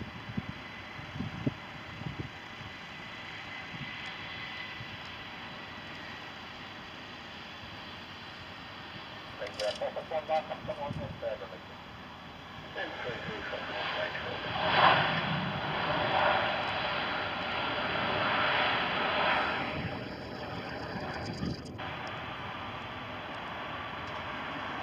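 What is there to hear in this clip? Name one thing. A jet airliner's engines roar loudly.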